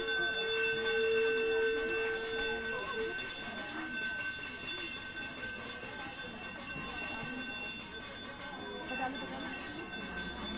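A crowd of men and women murmurs and chants nearby.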